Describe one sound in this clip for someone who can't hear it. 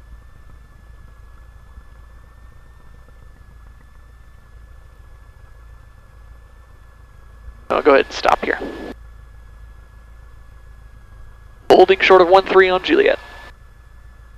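A small propeller plane's engine drones steadily from inside the cabin.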